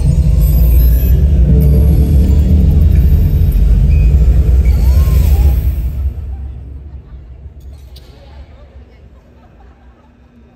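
Loud electronic music booms through loudspeakers in a large hall, then fades away.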